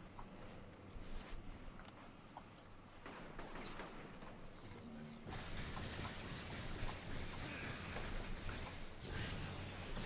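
Electric bolts crackle and zap in rapid bursts.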